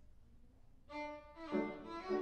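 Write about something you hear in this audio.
A violin plays.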